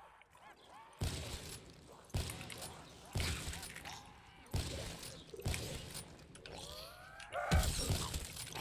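Gunshots ring out one by one.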